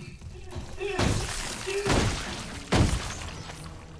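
Heavy boots stomp down with loud, wet thuds.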